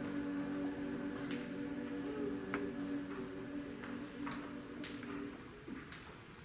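A choir sings a held chord in an echoing hall and then stops.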